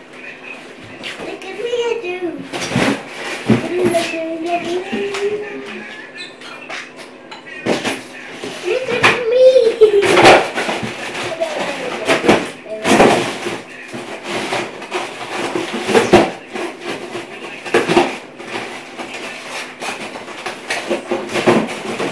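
Plastic toys knock and clatter on a table.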